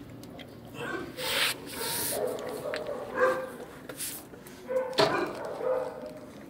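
A dog whines softly nearby.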